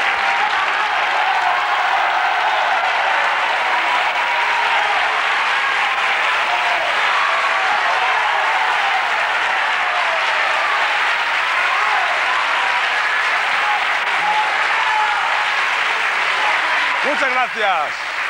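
An audience applauds and cheers loudly in a large hall.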